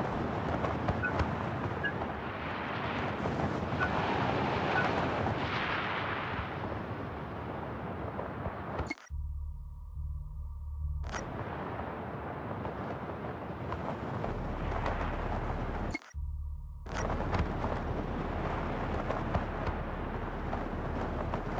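Wind roars and rushes past at high speed.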